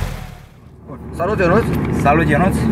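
A man speaks with animation, close by inside a car.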